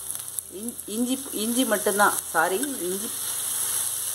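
A spoon scrapes paste into a pan.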